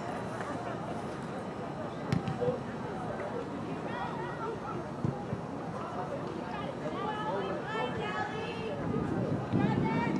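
Spectators chatter and call out outdoors.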